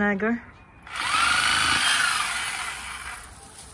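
A reciprocating saw buzzes loudly, cutting through roots.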